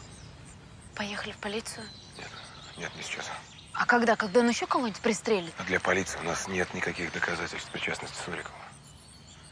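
A man speaks with animation, close by.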